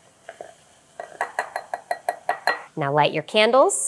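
Powder rattles into a glass from a metal scoop.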